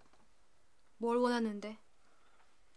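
A young woman speaks up in a startled voice.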